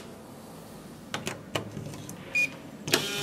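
A key card slides into a door lock.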